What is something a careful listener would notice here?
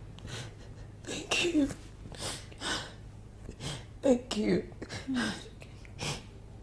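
A woman speaks tearfully close by.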